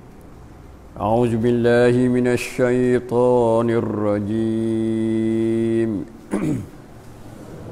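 An elderly man chants a recitation in a melodic voice through a microphone.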